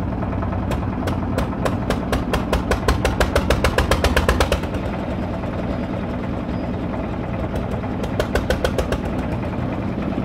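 A machine knocks in fast rapid bursts.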